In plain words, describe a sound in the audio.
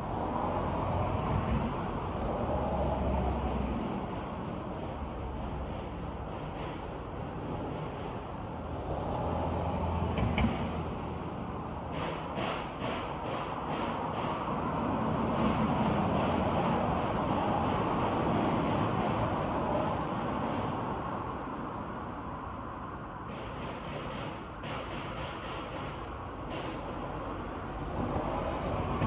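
Wind rustles the leaves of tall trees outdoors.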